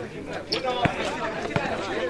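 A basketball bounces on a concrete court.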